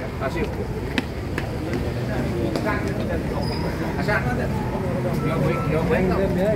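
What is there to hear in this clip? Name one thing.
Several men and women talk nearby outdoors.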